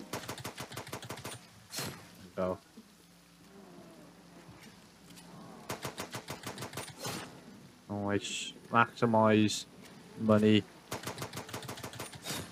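A pistol fires rapid shots in a video game.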